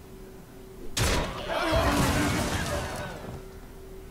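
A magical attack bursts with a crackling whoosh.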